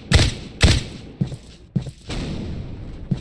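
A rifle fires loud, sharp shots that echo briefly.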